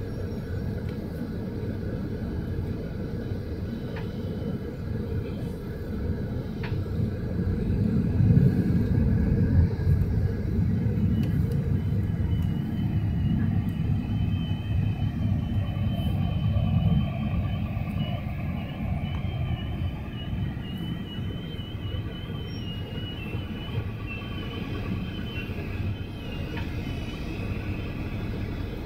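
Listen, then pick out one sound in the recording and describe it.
Heavy traffic rumbles steadily nearby.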